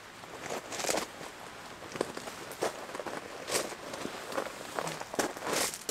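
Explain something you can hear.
Shoes crunch on gravel.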